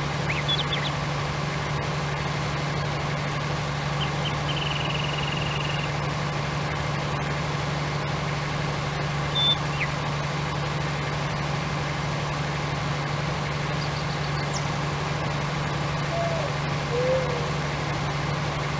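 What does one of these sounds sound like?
A harvester engine drones steadily.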